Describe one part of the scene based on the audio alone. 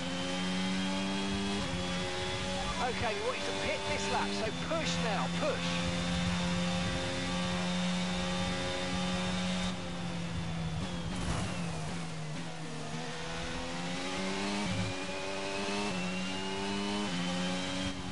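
A racing car engine roars at high revs, shifting up through the gears.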